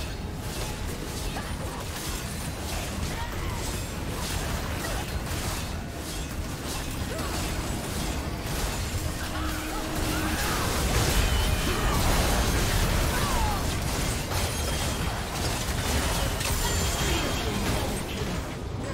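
Spell blasts and impacts crackle and boom in a game fight.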